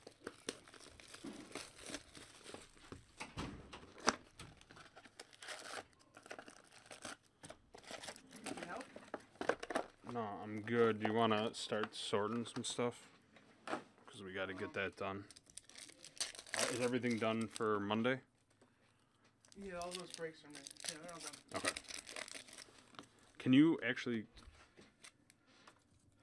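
Foil card packs crinkle and tear open.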